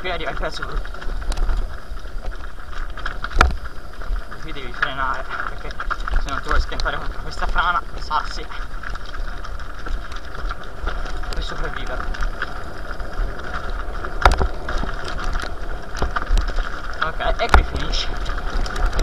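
A bicycle rattles and clunks over bumps in the trail.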